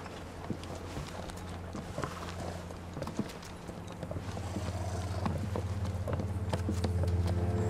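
Horse hooves clop slowly on a metal bridge.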